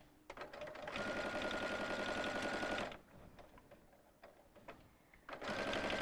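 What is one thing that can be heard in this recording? A sewing machine runs fast in short bursts.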